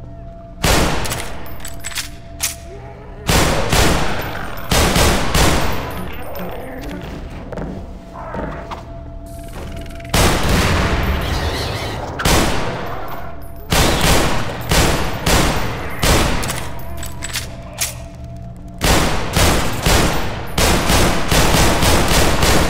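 Pistol shots bang and echo in a large hall.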